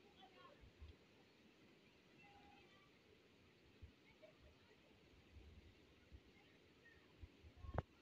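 Children shout and play in the rain.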